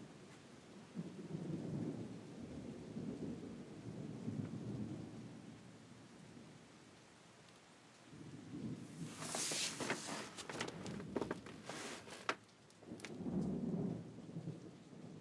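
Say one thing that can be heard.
A young woman speaks quietly and close by.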